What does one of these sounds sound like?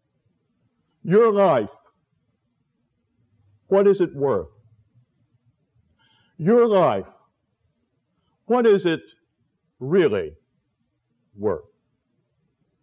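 An elderly man speaks slowly and calmly into a microphone, with long pauses between phrases.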